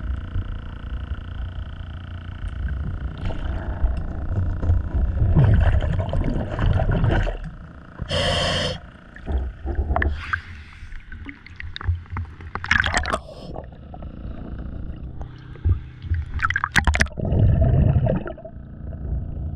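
Water sloshes and gurgles, heard close up from just under the surface.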